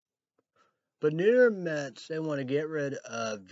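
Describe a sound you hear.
A man sings loudly with a wavering voice.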